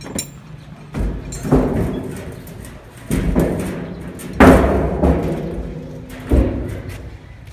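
Feet thump and scrape on a hollow metal tank.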